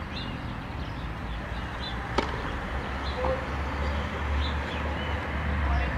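A tennis ball is bounced on a clay court before a serve.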